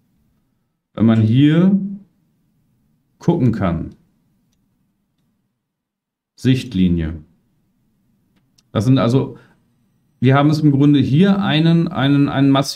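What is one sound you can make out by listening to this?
A man speaks over an online call in short phrases, with pauses between them.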